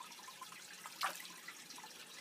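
A tank lid knocks as it is lifted.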